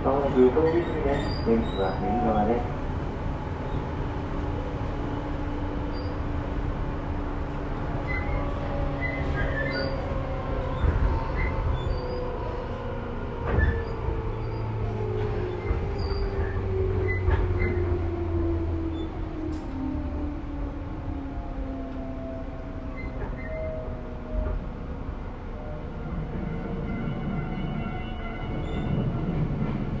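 An electric train rolls along the tracks with a motor whine that slowly falls in pitch.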